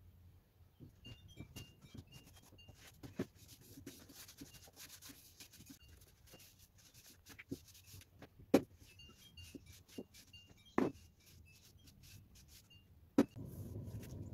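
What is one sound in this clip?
A cloth rubs and wipes across a wooden frame.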